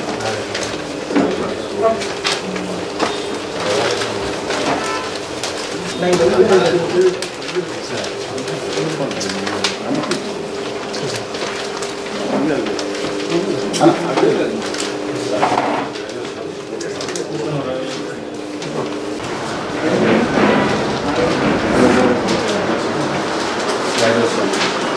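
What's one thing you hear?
Several men talk and murmur nearby.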